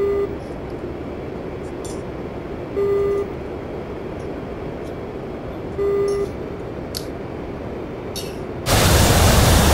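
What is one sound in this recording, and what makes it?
A jet engine hums low and steady, muffled as if from inside a cockpit.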